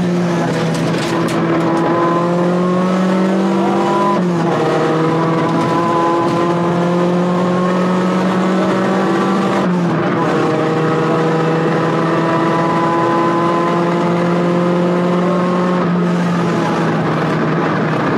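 A rally car engine roars at full throttle, its pitch climbing.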